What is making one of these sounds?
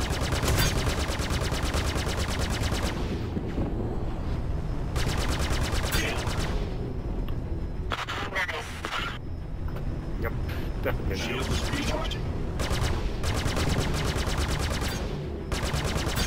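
A spaceship's guns fire in rapid bursts.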